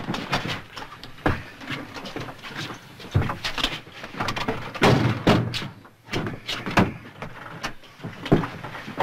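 Luggage knocks and clatters.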